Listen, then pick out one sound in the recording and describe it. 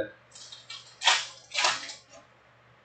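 A plastic wrapper crinkles in hands.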